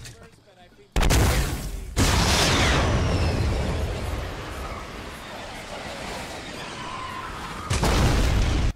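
A rocket roars loudly as it flies.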